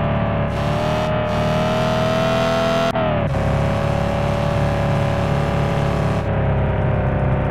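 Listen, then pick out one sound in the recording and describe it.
A car engine revs steadily, dropping in pitch as it shifts gear.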